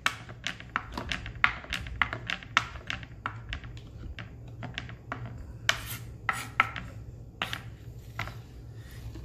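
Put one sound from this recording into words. A knife chops quickly on a wooden board with sharp taps.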